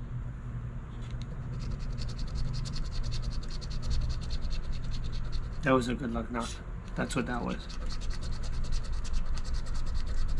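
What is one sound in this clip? A coin scratches rapidly across a lottery ticket.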